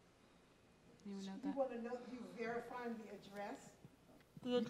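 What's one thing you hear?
An elderly woman speaks calmly through a microphone in a large room.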